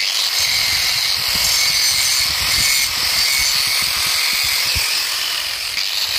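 A grinding wheel whines and hisses steadily against metal.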